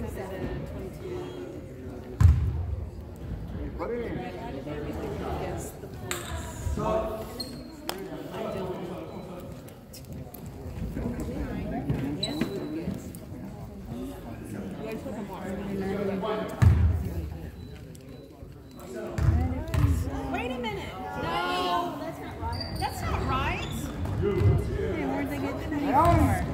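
Spectators, men and women, chat and call out nearby in an echoing gym.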